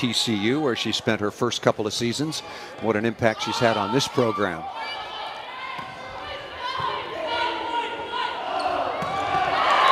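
A volleyball is struck with a hand slap.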